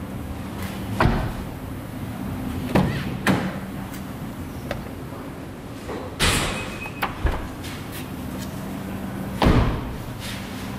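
A car door opens and thuds shut.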